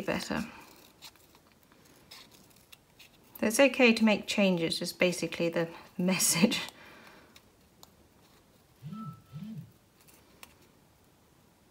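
Scissors snip through thin card.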